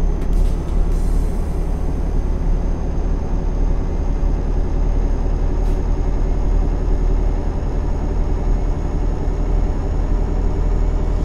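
Tyres roll steadily on a smooth road.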